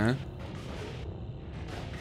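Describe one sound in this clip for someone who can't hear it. A blaster zaps as it fires in short bursts.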